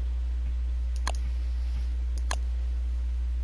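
A button clicks twice.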